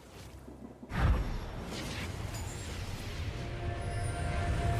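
A shimmering chime rings out as a beam of light rises.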